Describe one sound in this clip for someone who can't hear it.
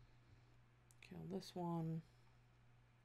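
A young woman speaks briefly into a microphone.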